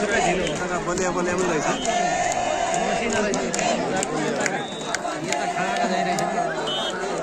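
A large outdoor crowd chatters and cheers.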